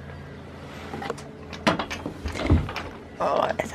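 Wooden boards knock and rattle close by.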